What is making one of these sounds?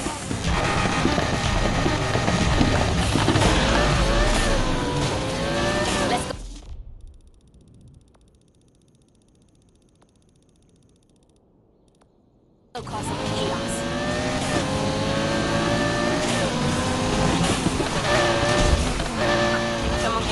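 A sports car exhaust pops and backfires.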